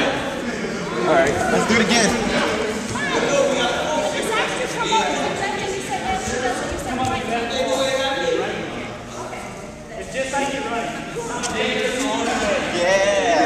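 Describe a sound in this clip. Several young adults talk and call out over one another in a large echoing gym.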